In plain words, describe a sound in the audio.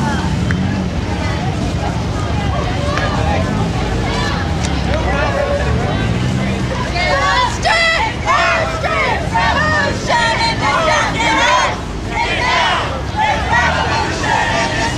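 A large crowd of men and women chatters and calls out nearby, outdoors.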